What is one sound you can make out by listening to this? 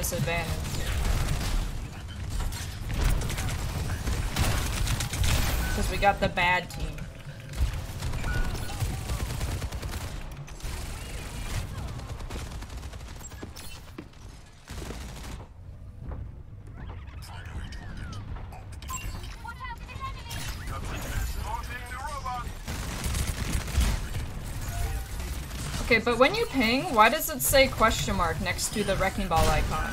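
A young woman talks with animation through a close microphone.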